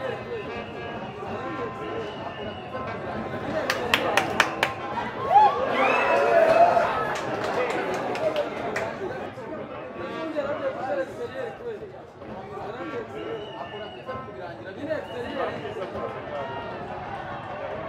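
A crowd in a stadium shouts and cheers, rising to a loud roar.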